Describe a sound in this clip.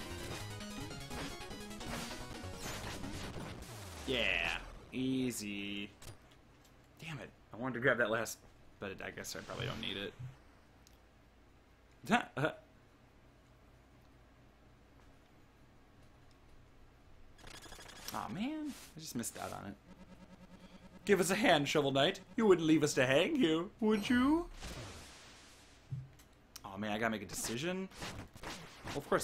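Chiptune video game music plays with bleeping sound effects.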